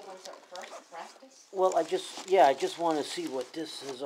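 Plastic sheeting rustles and crinkles close by.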